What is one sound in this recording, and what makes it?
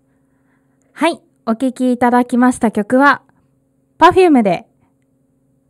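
A young woman speaks close into a microphone with animation.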